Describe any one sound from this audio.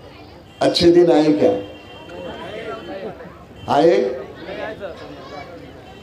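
A man speaks loudly and forcefully into a microphone over a loudspeaker.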